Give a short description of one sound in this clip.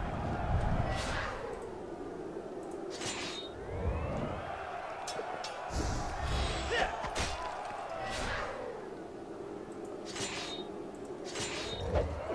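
Swords clash and ring in a fight.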